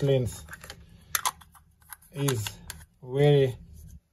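A plastic cap clicks as it is twisted onto a lens.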